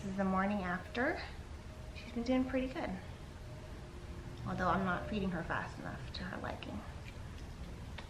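A young woman talks softly nearby.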